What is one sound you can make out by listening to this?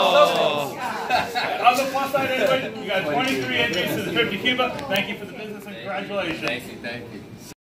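A younger man talks and laughs nearby.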